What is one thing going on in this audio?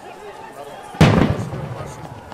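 A tear gas canister bursts with a loud bang.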